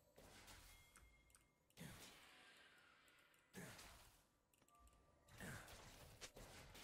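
Fantasy spell effects whoosh and crackle in quick bursts.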